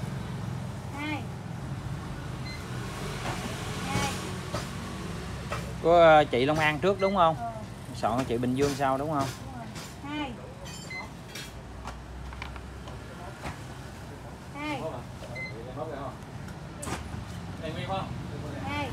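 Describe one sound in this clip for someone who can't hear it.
A second woman answers calmly close by.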